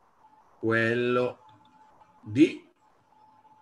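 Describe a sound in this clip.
A man speaks briefly through an online call.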